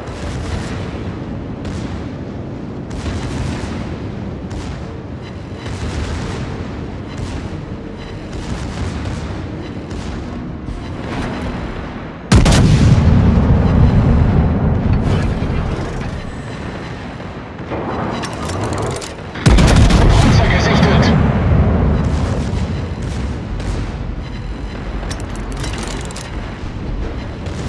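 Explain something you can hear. Sea water rushes steadily along a moving ship's hull.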